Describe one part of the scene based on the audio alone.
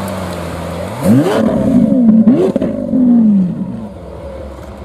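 A sports car engine revs loudly in sharp bursts.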